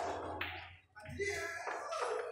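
A cue strikes a ball, and balls crack apart on the break.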